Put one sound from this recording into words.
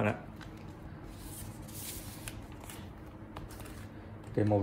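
A plastic sleeve rustles and crinkles as a phone is handled.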